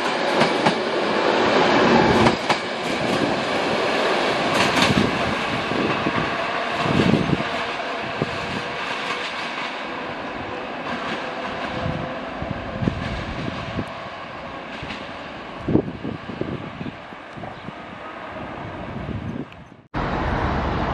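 A passenger train rumbles and clatters away along the tracks, slowly fading.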